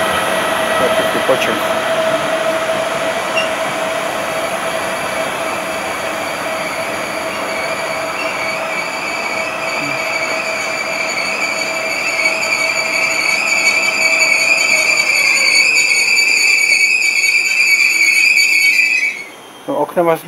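An electric train pulls away with a steady, rising whine.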